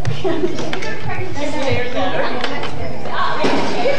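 A toddler clicks the buttons of a plastic toy.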